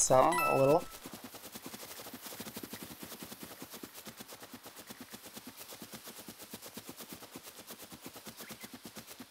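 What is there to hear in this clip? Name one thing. Quick light footsteps patter steadily on grass.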